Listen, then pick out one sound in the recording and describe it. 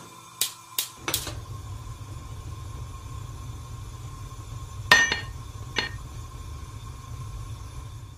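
A gas flame roars softly and steadily.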